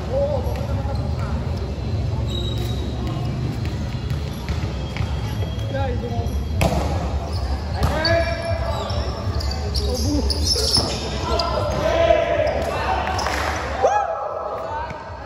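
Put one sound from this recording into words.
Young men shout and call out to each other across a large echoing hall.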